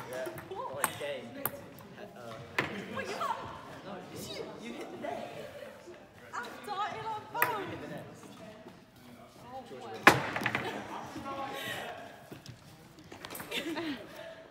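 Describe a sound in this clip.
A young woman and a young man talk in an echoing hall.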